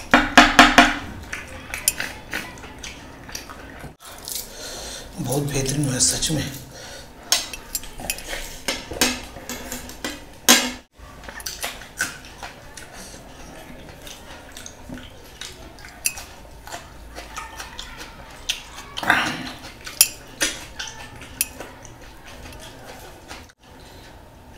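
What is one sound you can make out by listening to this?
A man chews food wetly and smacks his lips close to a microphone.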